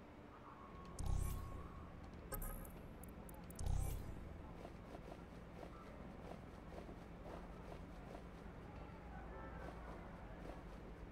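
Soft menu clicks and whooshes sound.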